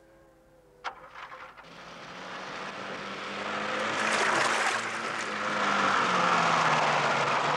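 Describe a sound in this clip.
An off-road vehicle's engine starts and runs.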